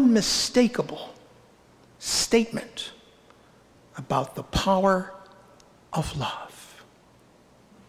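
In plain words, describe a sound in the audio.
A middle-aged man speaks calmly through a microphone in a large echoing hall.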